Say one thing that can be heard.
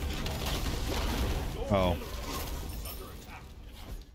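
Game sound effects of fiery blasts and clashes ring out.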